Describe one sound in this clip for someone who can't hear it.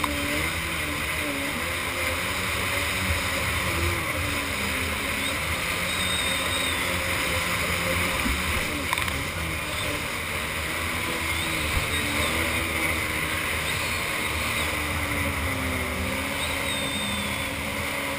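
Water splashes and sprays against a jet ski's hull.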